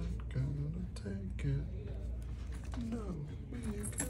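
A card taps softly onto a tabletop.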